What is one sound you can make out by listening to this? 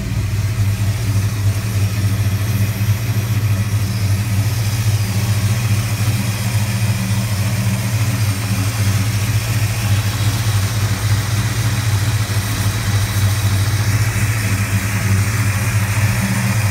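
A big car engine idles with a deep, steady rumble close by.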